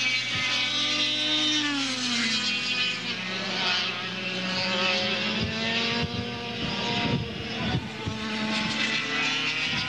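A kart engine buzzes loudly, its pitch rising and falling as it speeds up and slows.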